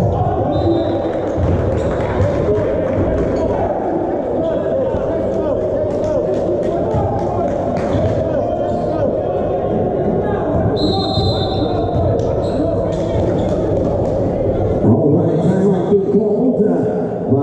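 Sports shoes squeak on a hard court.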